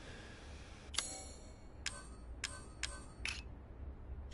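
Short sharp menu clicks tick in quick succession.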